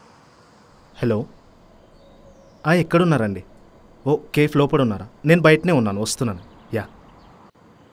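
A young man talks on a phone nearby, calmly.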